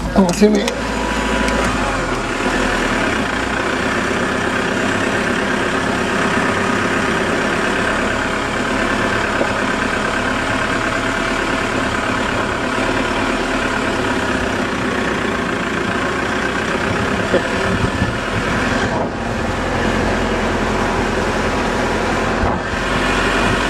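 Tyres crunch and hiss over loose sand.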